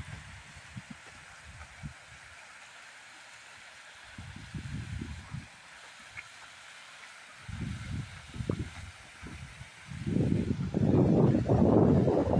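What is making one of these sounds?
Water trickles faintly in the distance.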